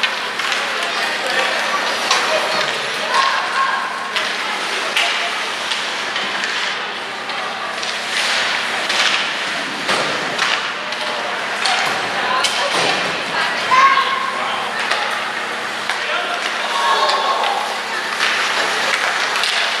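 Hockey sticks clack against a puck and the ice.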